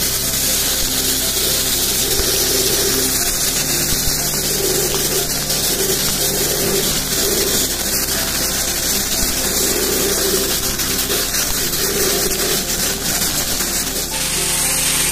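Compressed air and grit hiss loudly from a sandblasting nozzle.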